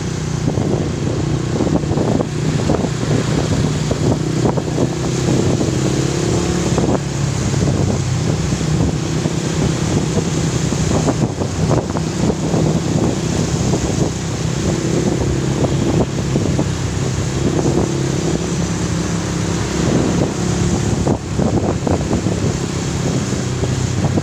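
Traffic rumbles along the road nearby.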